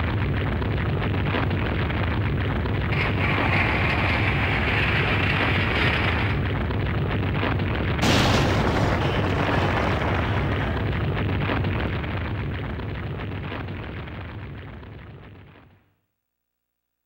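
A strong wind rushes and roars through a tunnel, then fades away.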